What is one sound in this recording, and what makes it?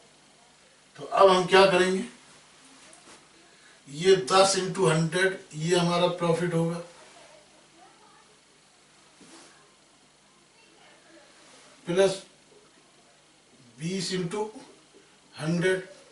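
A man speaks calmly in short phrases into a microphone, with pauses between them.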